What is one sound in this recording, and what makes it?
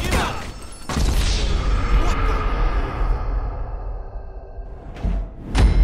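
A heavy dull thud booms and rings out slowly.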